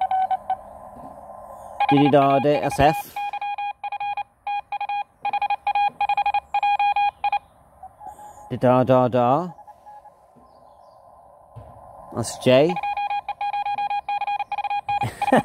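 A radio receiver beeps out quick bursts of Morse code.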